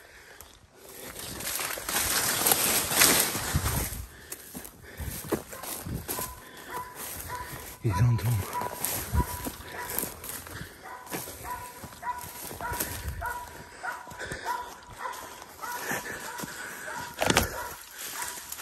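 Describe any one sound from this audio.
Dry brush and leaves rustle and crackle as someone pushes through thick undergrowth.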